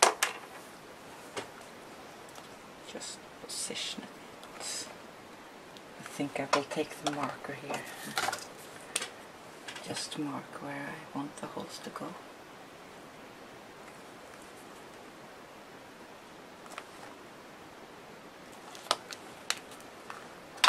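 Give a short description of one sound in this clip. Paper and card rustle and tap as they are handled.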